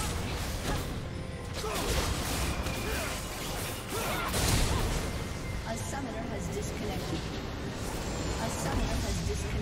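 Game spells and hits crackle and boom in a busy fight.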